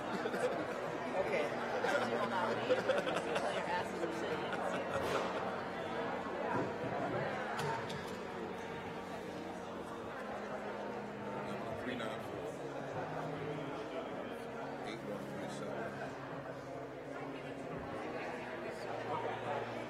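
A crowd of men and women chatter all around in a large echoing hall.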